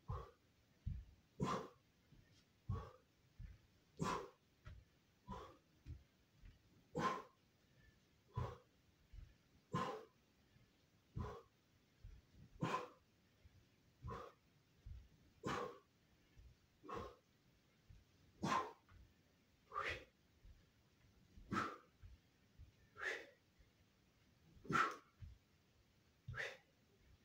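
Feet thump and shuffle on a floor.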